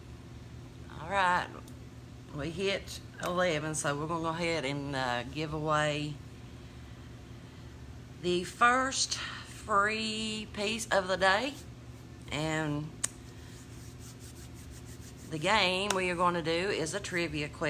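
A middle-aged woman speaks calmly and close to the microphone, in short bursts with pauses.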